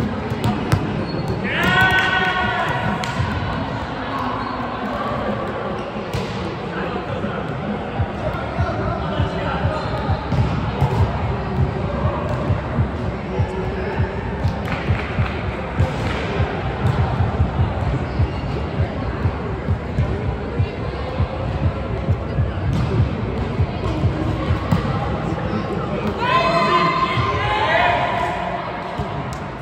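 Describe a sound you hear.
Players call out and chatter across the court.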